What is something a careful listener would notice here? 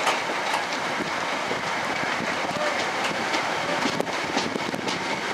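A train rumbles and clatters along the rails.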